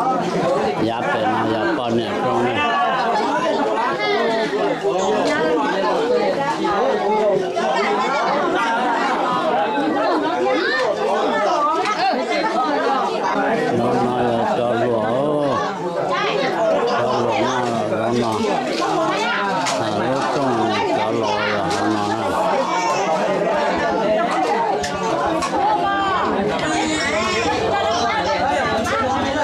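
A crowd of men, women and children chatter loudly and without a break, close by.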